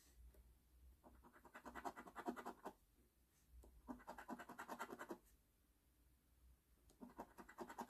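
A coin scratches rapidly across a card.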